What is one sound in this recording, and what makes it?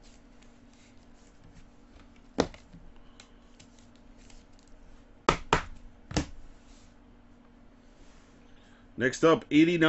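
Trading cards tap and rustle as they are handled close by.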